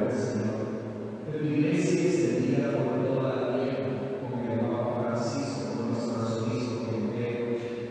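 A middle-aged man speaks steadily into a microphone in a large echoing hall.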